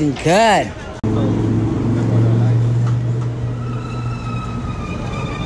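A car engine hums steadily as a vehicle rolls slowly past.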